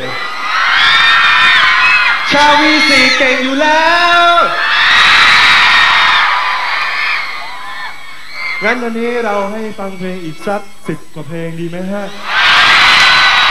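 A large crowd screams and cheers in a big hall.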